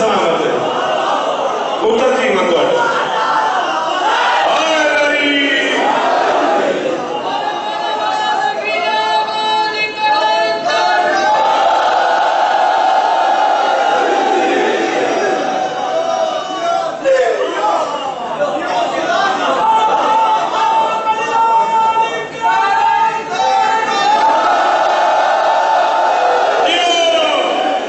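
A man recites with passion through a loudspeaker, in a large echoing hall.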